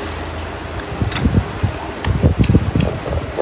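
A man chews food noisily, close by.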